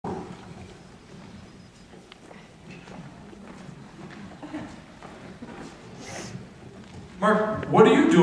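A middle-aged man speaks quietly through a microphone.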